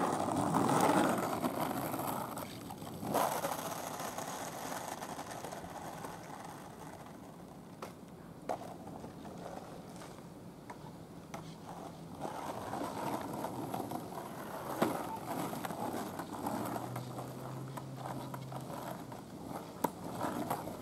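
Skateboard wheels rumble over rough asphalt.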